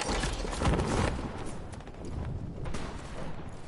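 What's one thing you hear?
Wind rushes past a glider in flight.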